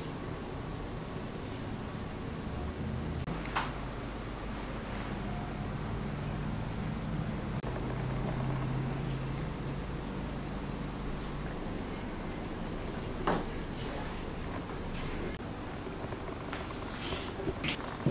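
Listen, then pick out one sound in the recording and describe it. A knife cuts through fondant.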